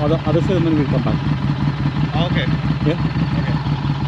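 A man speaks casually at close range.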